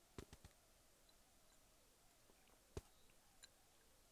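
A man sips from a bowl.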